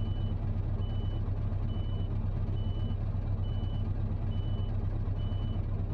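A truck's reversing alarm beeps at an even pace.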